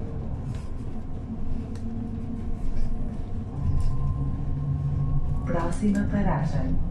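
A bus engine hums low and steady as the bus rolls slowly closer.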